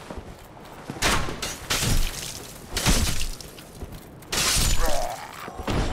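Metal weapons clash and strike with sharp, loud hits.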